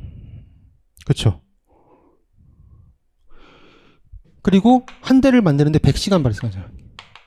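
A young man speaks clearly into a microphone, explaining with animation.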